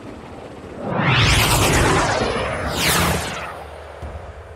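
A spaceship streaks past with a loud rushing whoosh.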